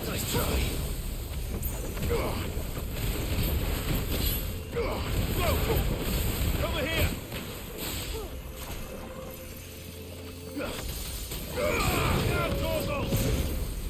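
Fire bursts and roars with each flaming attack.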